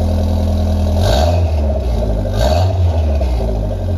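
A car engine revs briefly twice.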